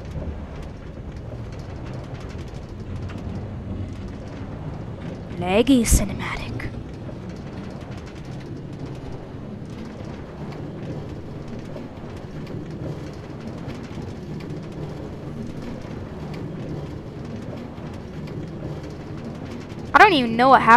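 A minecart rattles steadily along rails.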